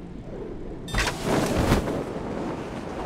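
A parachute snaps open with a whoosh.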